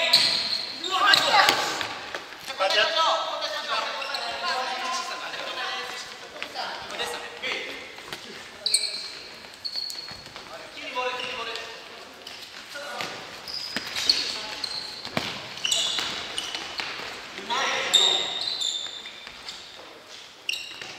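Men shout to each other across an echoing indoor hall.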